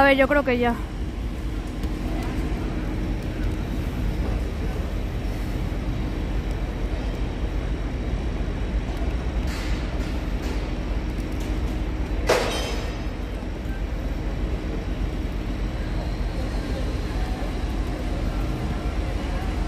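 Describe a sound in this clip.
Heavy machinery hums with a steady low rumble outdoors.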